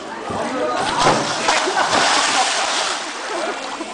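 Water splashes loudly as a person plunges into a pool.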